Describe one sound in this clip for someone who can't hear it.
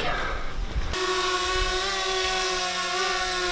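A small drone's propellers whir with a steady high buzz.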